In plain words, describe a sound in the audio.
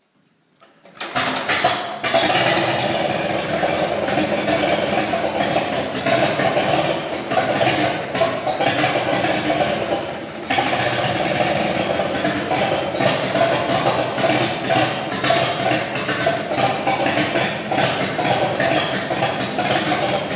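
An old tractor engine starts up and runs loudly with a rough, rapid chugging.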